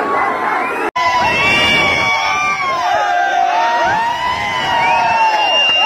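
Several people shout and talk excitedly close by.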